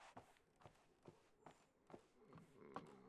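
Footsteps knock on a wooden floor at an even pace.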